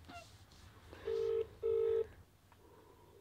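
A phone's ringing tone beeps twice through its speaker.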